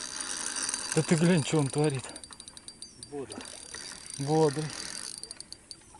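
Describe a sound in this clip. A spinning reel's handle is cranked.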